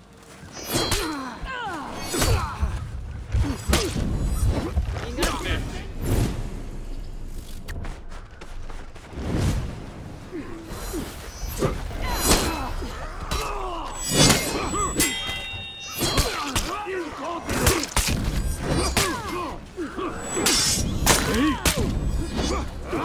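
Steel swords clash and ring again and again.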